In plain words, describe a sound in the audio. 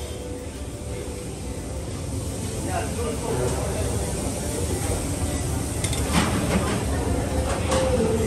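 A serving spoon scrapes and clinks against a metal tray.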